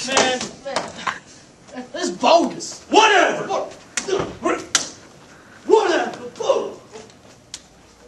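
Teenage boys shout nearby.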